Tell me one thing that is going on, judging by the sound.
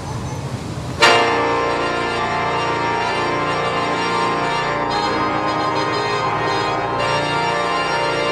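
A pipe organ plays full, sustained chords that fill a large echoing hall.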